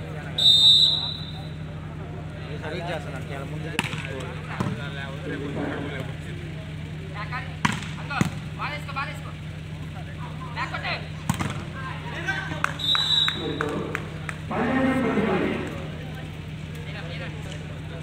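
A crowd of spectators chatters and shouts outdoors.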